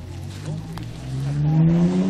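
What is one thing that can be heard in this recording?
A car engine revs up.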